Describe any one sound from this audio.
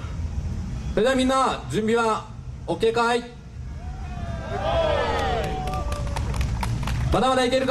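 A young man shouts with energy through a microphone over loudspeakers outdoors.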